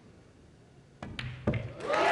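A cue strikes a ball with a sharp knock.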